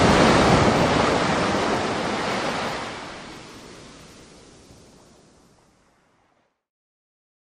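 Small waves lap gently against rocks by the shore.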